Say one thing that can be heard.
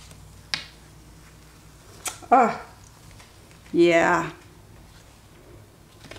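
A sheet of paper rustles as it is peeled off and lifted.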